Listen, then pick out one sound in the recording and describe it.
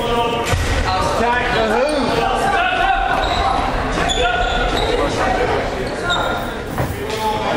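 A crowd of spectators talks and shouts in a large echoing gym.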